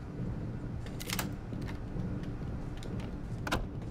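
A heavy metal door swings open with a clank.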